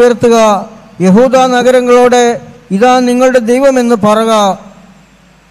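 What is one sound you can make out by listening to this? A middle-aged man sings slowly through a microphone.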